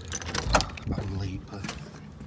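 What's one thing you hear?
Keys jingle and a lock clicks as a door is unlocked.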